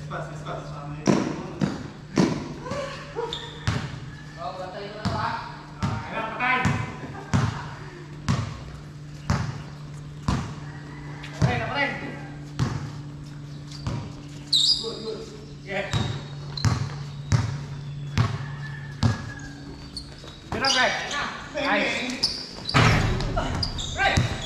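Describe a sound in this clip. A basketball bounces repeatedly on a hard court.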